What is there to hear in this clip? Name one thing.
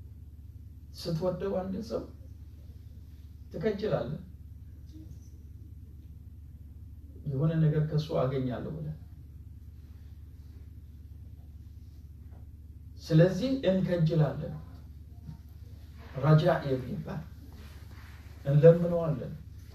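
A middle-aged man speaks calmly in short phrases with long pauses, close by.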